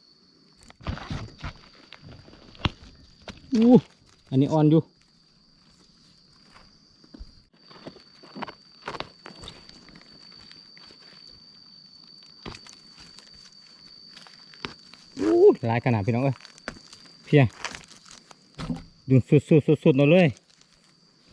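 Dry leaves rustle and crunch as hands pull up plants.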